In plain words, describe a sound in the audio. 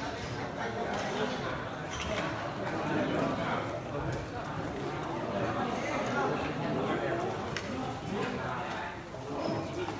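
Plastic containers clink and knock.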